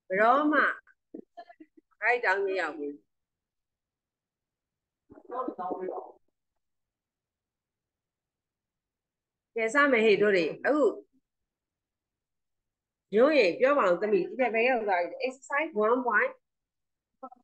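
A middle-aged woman speaks calmly in bursts over an online call.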